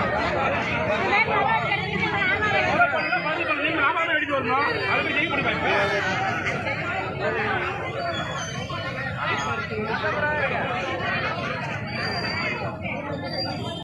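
A crowd of men shouts and chants loudly outdoors.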